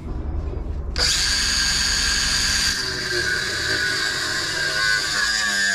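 An angle grinder whirs up and grinds metal with a loud, steady whine.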